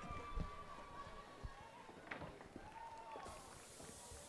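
Footsteps thud on a wooden stage.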